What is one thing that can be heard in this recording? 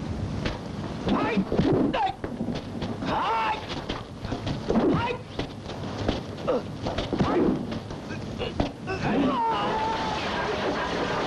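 A man grunts loudly with effort.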